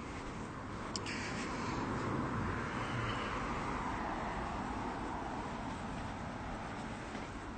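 A young man speaks quietly and close up.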